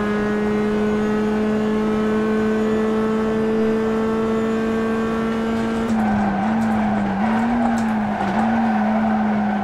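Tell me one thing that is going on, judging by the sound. A racing car engine drones steadily at high speed, then its pitch wavers.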